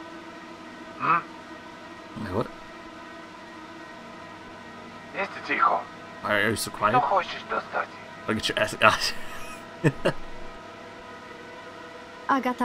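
A young man talks with animation through a close microphone.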